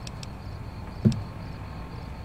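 A soft electronic click sounds as a menu selection changes.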